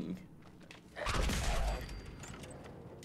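A gunshot bursts loudly.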